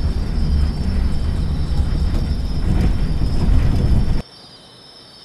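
A bus engine rumbles loudly and steadily.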